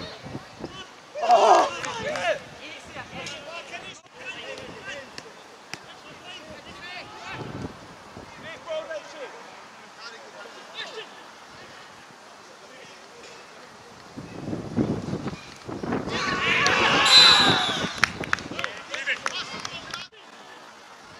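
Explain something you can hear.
Men shout and call out across an outdoor pitch.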